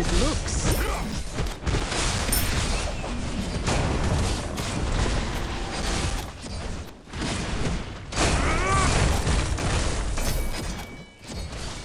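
Magic blasts and hits crash and crackle in a hectic fight.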